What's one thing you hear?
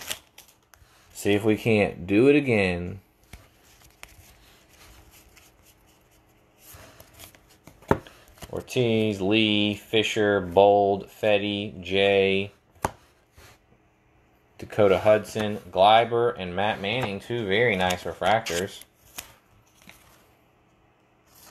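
Trading cards rustle and slide softly in a hand.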